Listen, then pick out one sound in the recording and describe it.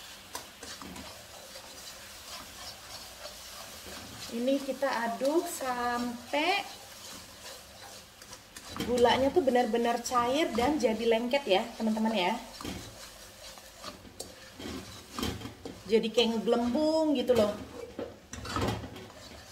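Food sizzles gently in a hot pan.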